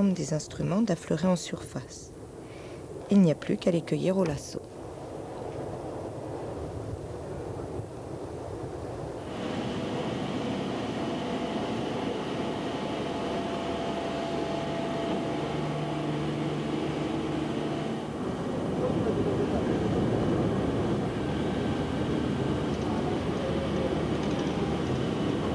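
Waves wash and splash on open water.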